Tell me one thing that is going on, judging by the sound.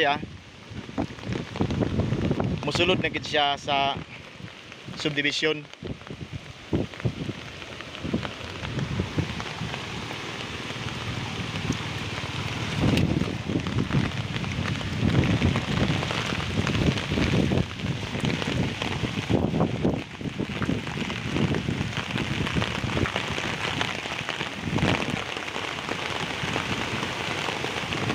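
Wind buffets the microphone in strong gusts.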